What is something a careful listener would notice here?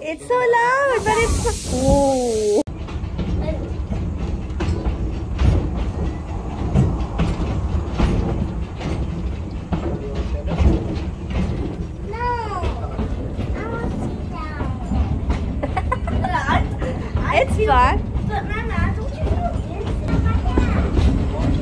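An open train car rumbles and rattles along its track.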